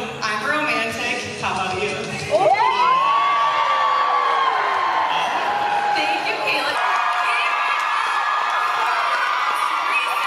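A young woman speaks with animation through a microphone over loudspeakers in a large hall.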